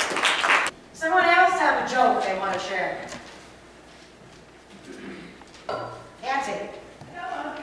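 A woman speaks with animation through a microphone in an echoing hall.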